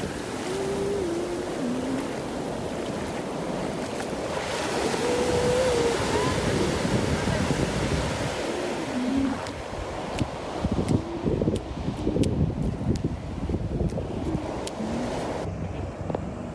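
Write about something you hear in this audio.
Shallow waves wash and fizz over sand.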